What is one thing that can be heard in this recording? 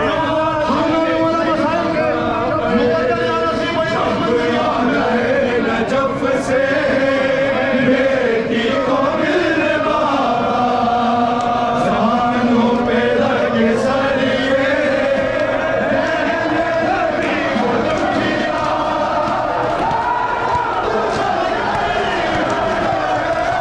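A man chants loudly through a microphone and loudspeaker.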